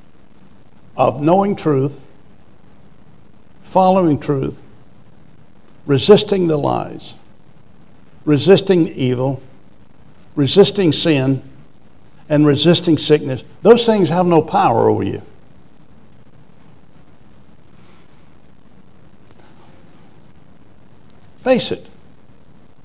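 A middle-aged man speaks with animation through a microphone, in short phrases with long pauses.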